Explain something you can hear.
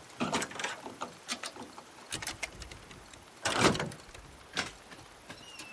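Metal clanks and rattles as a vehicle's door is worked open.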